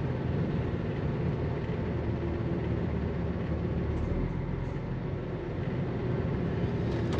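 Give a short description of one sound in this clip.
A vehicle's engine rumbles steadily from inside the cab.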